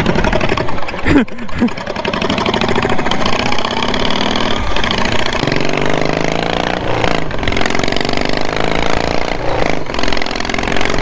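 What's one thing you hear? A small engine roars steadily close by, its pitch rising and falling.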